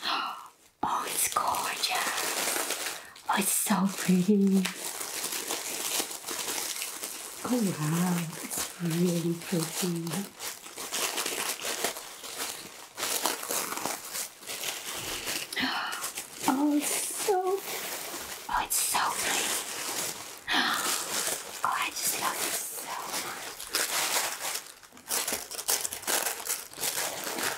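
Tissue paper crinkles and rustles close up.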